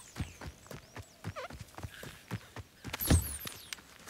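Footsteps pad through grass.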